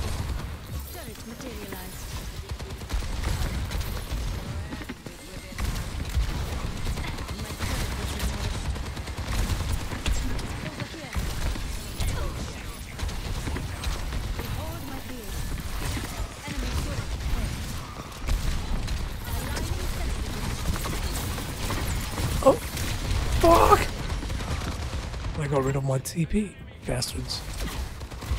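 Energy guns fire rapidly in bursts.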